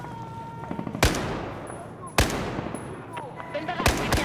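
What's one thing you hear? A rifle fires single loud shots with a sharp echo.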